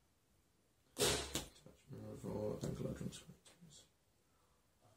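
Playing cards are slapped and slid onto a cloth-covered table.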